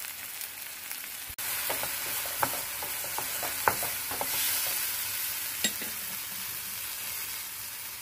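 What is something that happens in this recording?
Vegetables sizzle in a hot frying pan.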